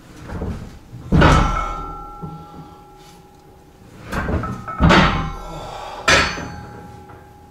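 Heavy weight plates clang and ring with loud metallic crashes.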